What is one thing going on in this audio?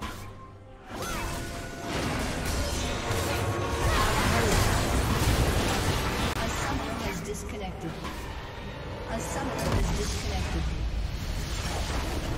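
Game spell and combat sound effects clash and crackle.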